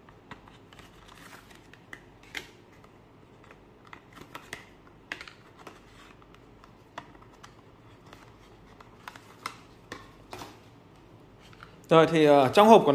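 Paper packaging rustles and crinkles close by.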